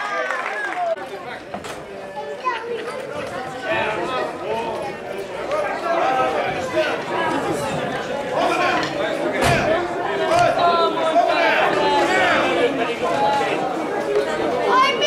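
A crowd of men talk and shout outdoors.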